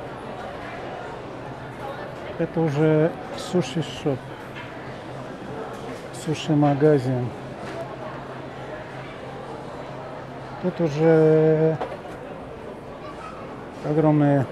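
A crowd murmurs in a busy indoor hall.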